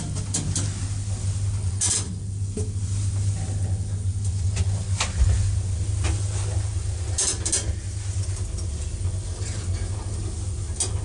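A handheld phone rustles and knocks in a hand.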